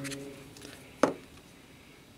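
A small metal cylinder taps down onto paper on a hard surface.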